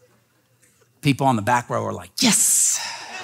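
A man speaks loudly and with animation through a microphone.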